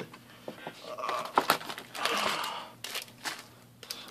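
Foil card packs rustle as hands pull them from a box.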